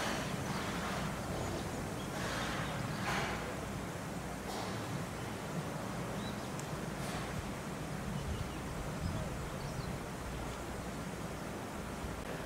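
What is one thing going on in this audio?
Branches and leaves rustle as a chimpanzee moves through a bush.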